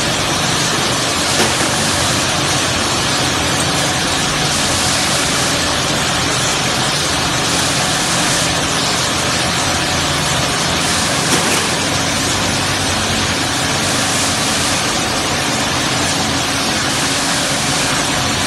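A machine hums and whirs steadily.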